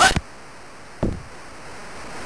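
A football is kicked with a dull thump.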